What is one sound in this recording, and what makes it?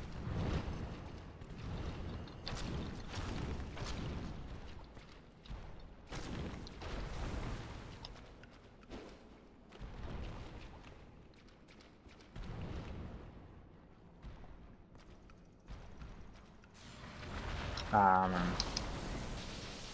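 Heavy blows and metallic clashes ring out in a game fight.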